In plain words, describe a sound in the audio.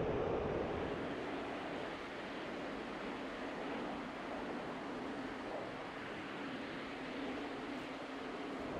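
A jet engine roars as a fighter jet flies past.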